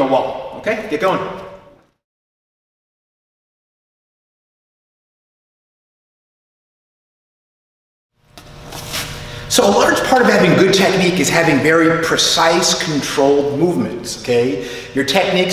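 A man speaks clearly and calmly to the listener.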